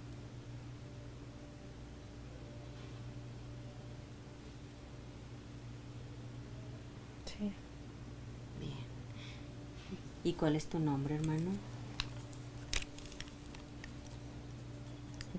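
A woman snores softly in her sleep.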